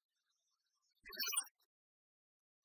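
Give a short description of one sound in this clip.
A young woman gasps in surprise.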